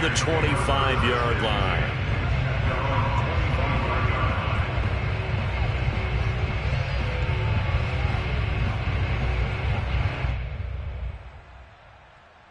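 A stadium crowd roars steadily and then fades away.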